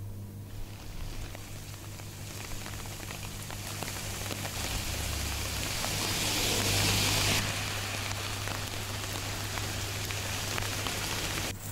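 Car tyres hiss on a wet road as vehicles pass.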